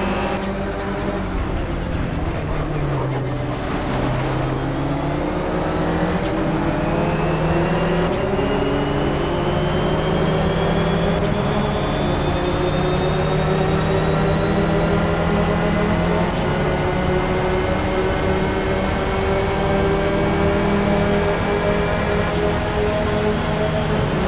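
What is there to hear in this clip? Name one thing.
A race car engine roars and climbs in pitch as it speeds up through the gears.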